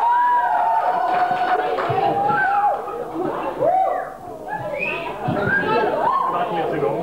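A man sings into a microphone, heard through loudspeakers in a hall.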